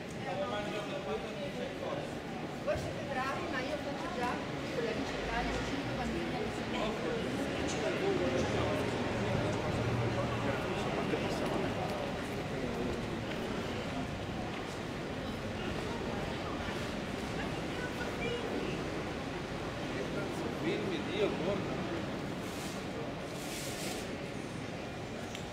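Footsteps tap on hard paving.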